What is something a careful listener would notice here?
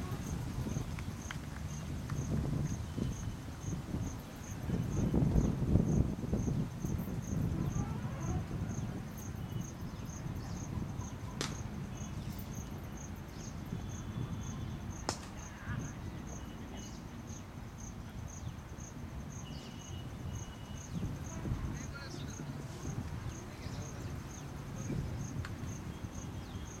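Wind rumbles over the microphone outdoors.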